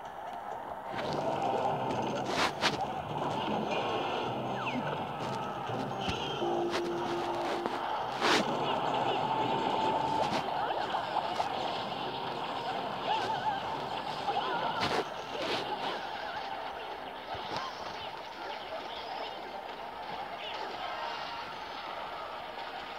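Cartoonish battle sounds play, with thuds, blasts and small impacts.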